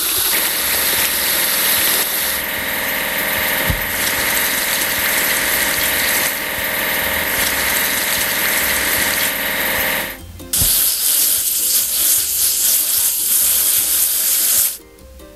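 A spray nozzle hisses, spraying water.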